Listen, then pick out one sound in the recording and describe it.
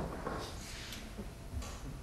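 A man speaks briefly into a microphone in a large hall.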